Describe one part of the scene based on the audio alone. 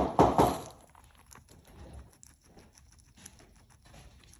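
A guinea pig nibbles and crunches on fresh herbs close by.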